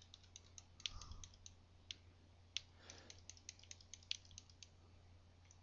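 Quick video game hit sounds click and ping rapidly.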